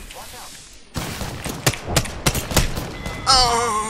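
A rifle fires several sharp shots in quick succession.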